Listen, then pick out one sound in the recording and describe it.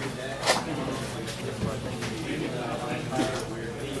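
Cards riffle and flick as a hand shuffles them.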